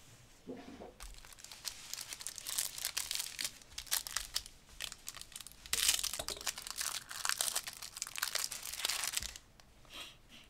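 A foil card wrapper crinkles and rustles as it is torn open.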